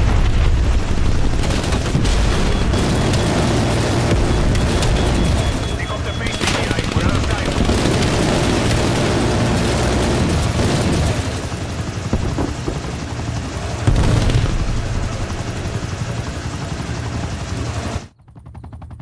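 A heavy rapid-fire gun roars in long, continuous bursts.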